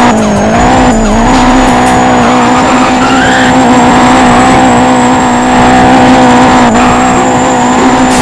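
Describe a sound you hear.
Car tyres screech while sliding.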